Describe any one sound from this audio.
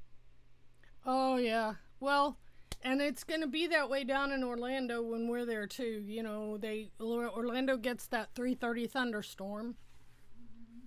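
A middle-aged woman sings close to a microphone.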